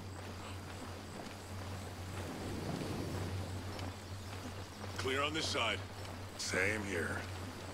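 Footsteps rustle softly through grass and dirt.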